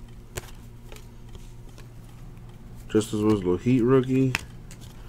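Trading cards flick and slide against each other.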